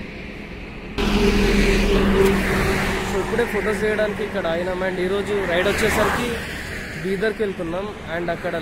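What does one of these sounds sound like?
A young man talks to a close microphone with animation.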